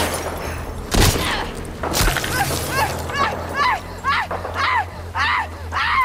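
A brief violent scuffle thrashes through the grass.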